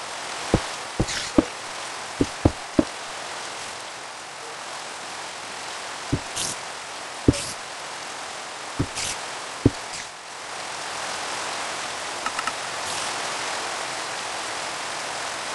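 Rain falls steadily in a video game.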